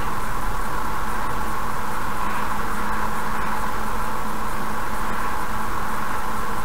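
A car hums steadily as it drives along a road, with road noise throughout.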